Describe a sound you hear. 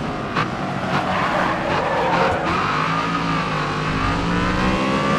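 Tyres squeal on asphalt while cornering.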